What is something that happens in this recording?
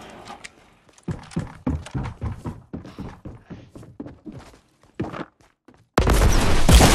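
Footsteps patter quickly across the ground and floor.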